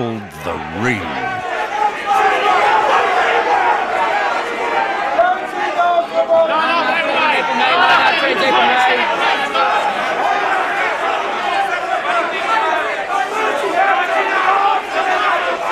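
A crowd of men shout over one another in a loud, echoing hall.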